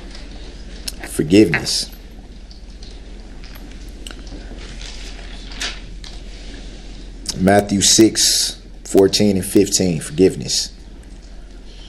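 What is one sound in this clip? A man speaks haltingly through a microphone.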